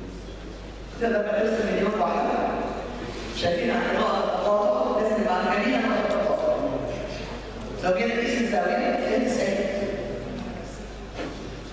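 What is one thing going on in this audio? An older woman speaks into a microphone, calmly explaining.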